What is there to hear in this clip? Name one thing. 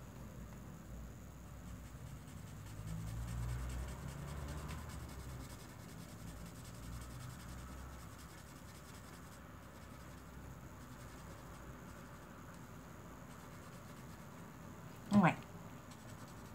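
A marker pen squeaks softly as it scratches across paper.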